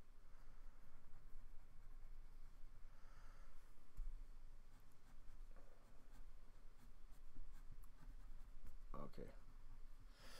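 A marker squeaks softly across paper.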